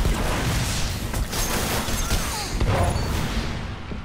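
An electric blast crackles and booms.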